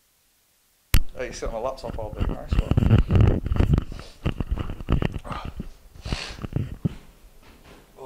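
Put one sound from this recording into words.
A young man talks and laughs close by, with animation.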